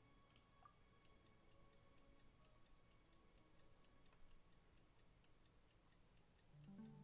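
Soft high clicks tick quickly and evenly, then stop.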